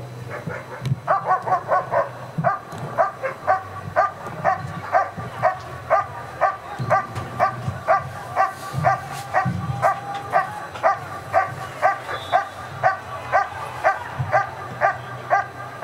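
A dog barks loudly and rapidly, again and again.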